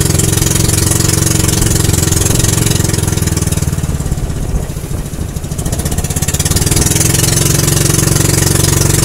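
A boat engine drones steadily, close by.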